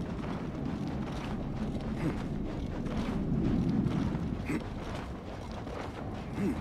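A body thuds as it rolls across the ground.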